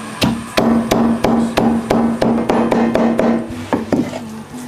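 A knife chops rhythmically on a cutting board.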